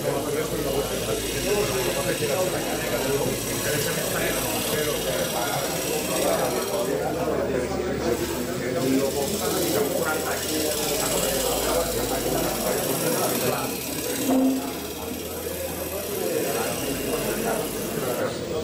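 A bench buffing wheel whirs steadily.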